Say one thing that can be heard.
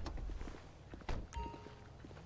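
A car door opens with a clunk.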